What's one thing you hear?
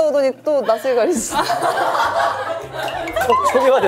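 Young women laugh loudly together.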